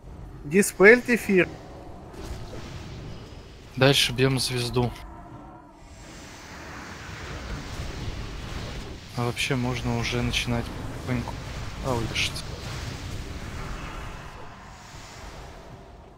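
Battle sound effects of spells and weapon strikes play continuously.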